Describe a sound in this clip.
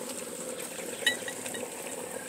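A glass clinks against a glass funnel.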